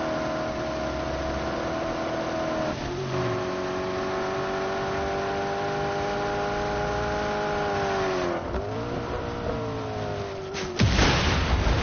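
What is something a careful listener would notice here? A car engine roars at high speed, shifting gears.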